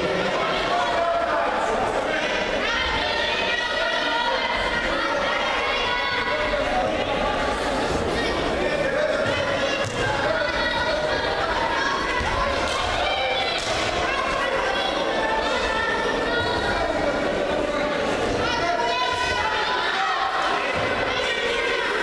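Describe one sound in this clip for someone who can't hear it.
A crowd of young spectators shouts and cheers in a large echoing hall.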